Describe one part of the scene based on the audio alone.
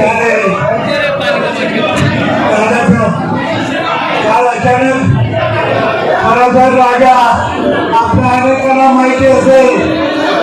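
An older man speaks forcefully into a microphone over a loudspeaker.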